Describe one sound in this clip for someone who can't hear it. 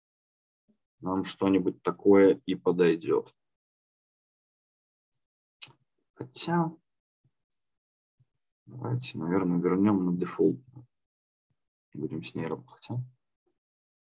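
A young man speaks calmly through an online call microphone, in short bursts with pauses.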